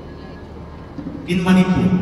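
A young man sings loudly into a microphone in a large hall.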